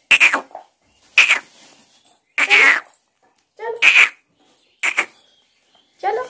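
A baby squeals and babbles up close.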